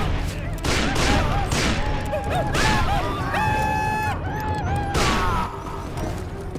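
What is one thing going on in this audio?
Revolver shots ring out in quick bursts.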